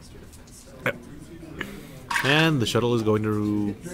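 Dice clatter as they are rolled into a tray.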